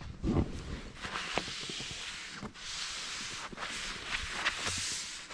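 A gloved hand brushes and scrapes snow off a sign.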